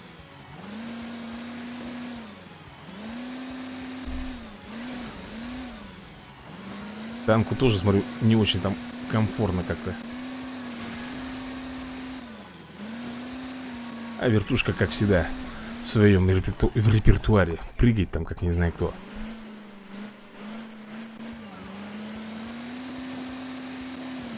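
A game's truck engine drones and revs up and down.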